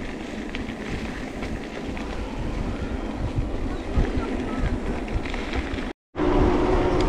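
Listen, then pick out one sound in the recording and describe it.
Bicycle tyres crunch and rattle over a gravel road.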